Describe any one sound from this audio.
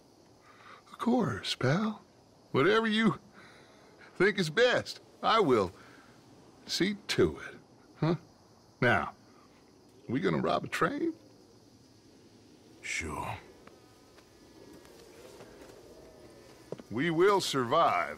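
A second man speaks with animation, close by.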